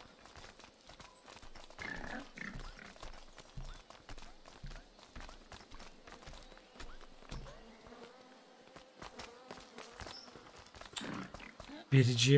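Footsteps patter steadily on a stone path.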